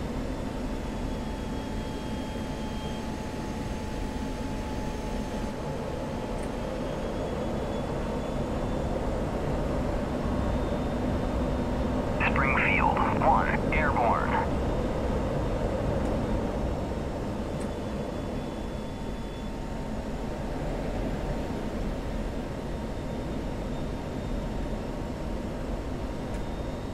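A jet engine roars steadily.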